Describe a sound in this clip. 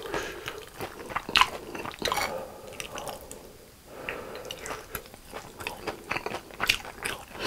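Thick sauce squelches wetly as food is pulled through it.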